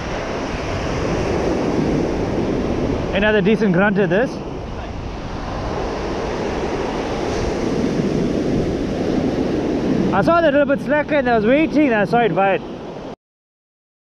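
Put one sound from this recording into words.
Surf breaks and washes up onto a sandy beach.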